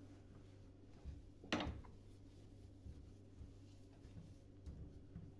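A cloth rubs and squeaks against a metal sink.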